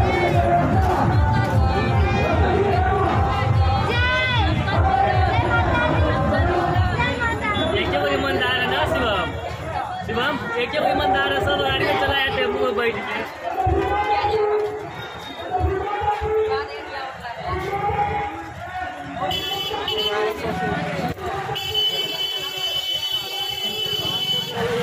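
A crowd of women and girls sings loudly nearby, outdoors.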